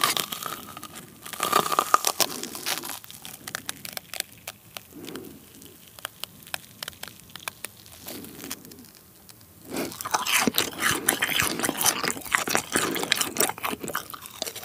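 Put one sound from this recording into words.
A young man chews food wetly and loudly, close to the microphone.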